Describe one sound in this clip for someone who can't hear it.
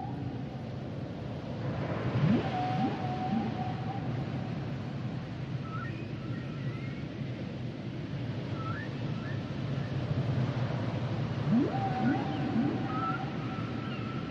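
Water rumbles steadily and low underwater.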